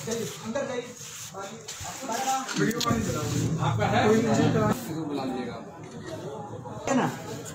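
A man talks close by.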